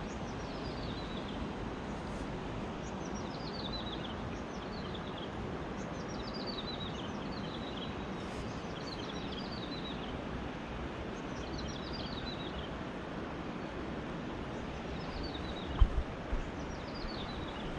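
A river flows and gurgles steadily over stones outdoors.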